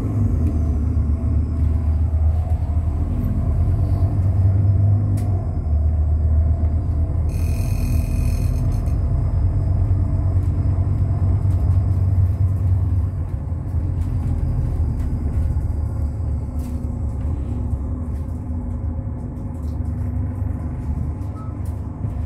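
A diesel bus engine drones, heard from inside the bus as it drives along.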